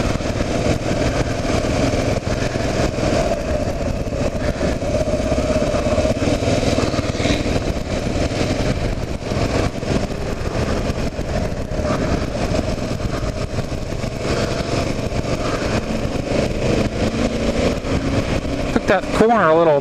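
Tyres roll steadily along a paved road.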